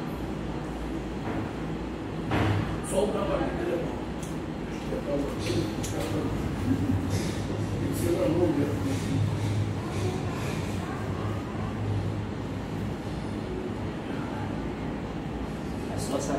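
A metal walker knocks and scrapes on a hard floor.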